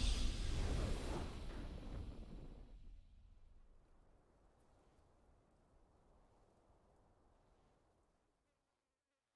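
A triumphant game fanfare swells and slowly fades away.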